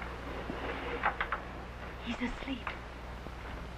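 A young woman speaks urgently up close.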